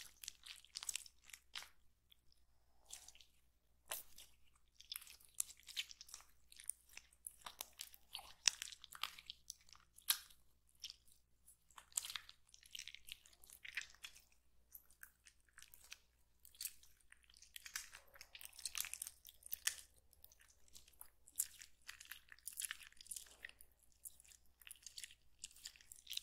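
A rubbery toy squishes and squelches close up as fingers squeeze it.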